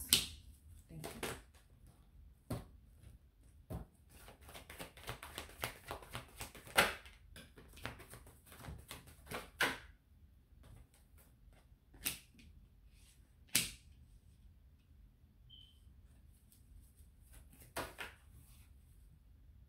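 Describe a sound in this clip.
Playing cards riffle and rustle as they are shuffled by hand.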